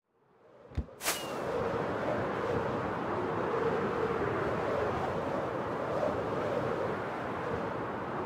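Wind rushes steadily past in flight.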